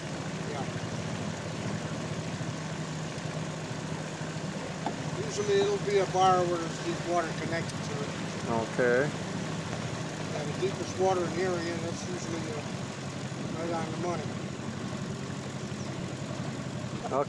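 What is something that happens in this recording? An outboard motor hums steadily.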